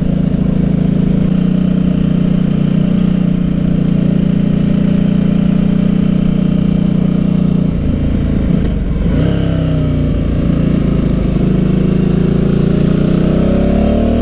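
A motorcycle engine hums steadily close by, dropping in pitch and then revving up again.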